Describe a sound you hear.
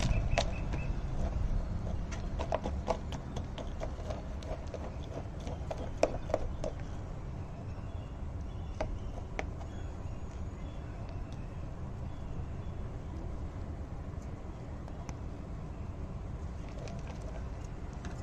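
Fingers crumble and press dry soil in a pot.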